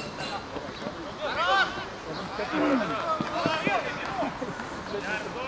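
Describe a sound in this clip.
Young men shout across an open playing field.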